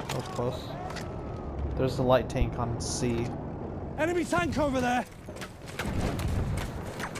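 A heavy machine gun fires in short bursts.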